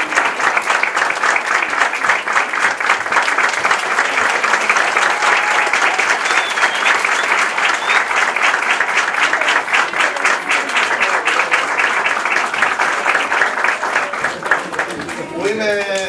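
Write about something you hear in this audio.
A crowd claps and applauds steadily.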